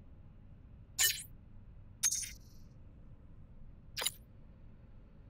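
Short electronic blips sound as text messages pop up.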